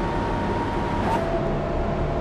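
A bus's automatic gearbox shifts, and the engine whine drops suddenly before climbing again.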